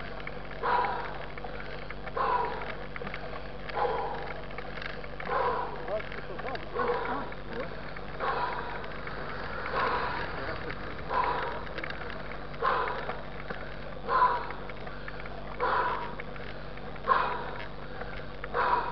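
Tyres roll steadily along a road.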